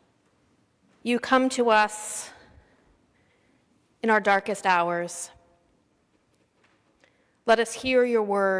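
A middle-aged woman speaks slowly and clearly into a microphone, with long pauses, in a reverberant hall.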